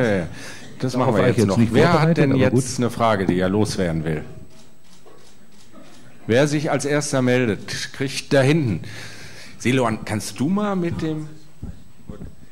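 A man speaks calmly into a microphone, heard over loudspeakers.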